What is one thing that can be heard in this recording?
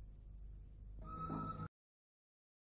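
A lift door slides shut.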